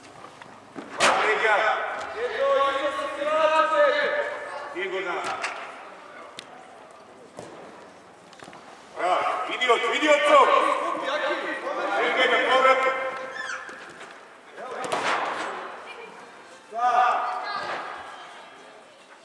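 Boys shout to each other across a large echoing indoor pitch.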